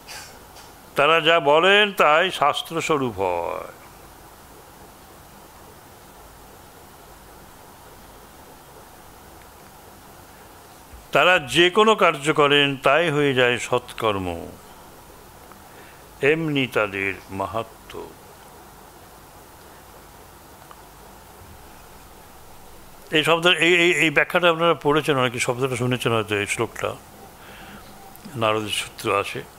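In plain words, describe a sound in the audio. An elderly man reads aloud calmly into a microphone, in bursts with long pauses.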